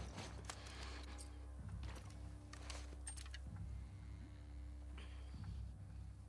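Weapons clatter softly as they are swapped.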